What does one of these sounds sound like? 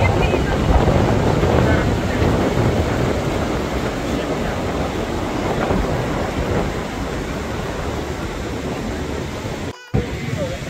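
Waves crash and wash onto a beach.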